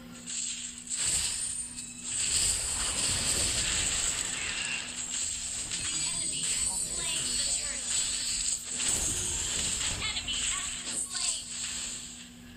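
Game spell effects whoosh and blast during a fight.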